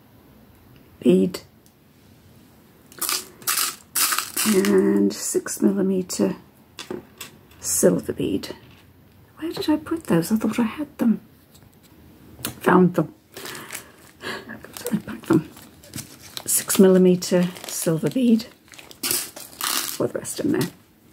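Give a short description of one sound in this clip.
An older woman talks calmly close to the microphone.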